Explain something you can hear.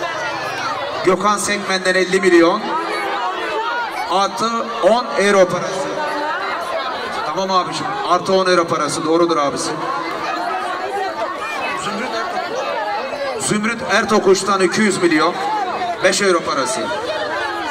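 A middle-aged man speaks loudly into a microphone, heard through loudspeakers.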